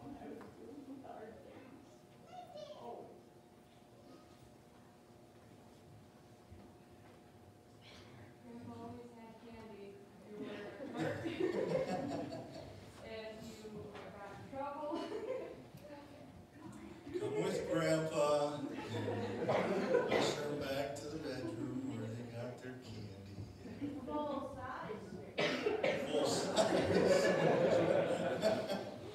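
A man speaks calmly into a microphone, heard from a distance through loudspeakers in a room with some echo.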